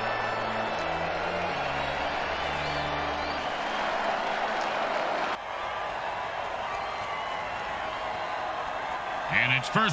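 A stadium crowd cheers and roars steadily in the distance.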